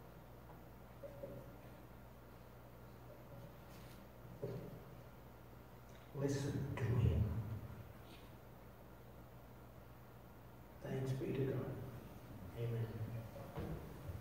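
An elderly man speaks slowly and calmly through a microphone in an echoing hall, with long pauses.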